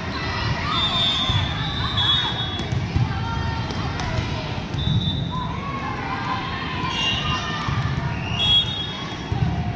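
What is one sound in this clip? A volleyball is hit with a sharp slap.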